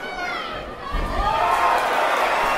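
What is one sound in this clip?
A crowd roars loudly as a boxer goes down.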